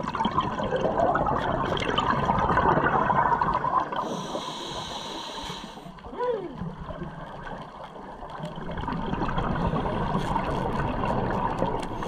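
Air bubbles from a diver's breathing gurgle and rumble loudly underwater.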